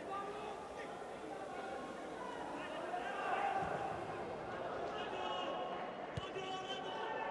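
A crowd of fans chants and sings in a large open stadium.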